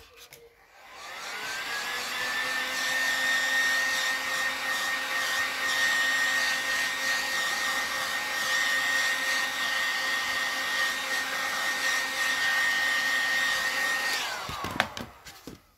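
A heat gun blows with a steady whirring hum.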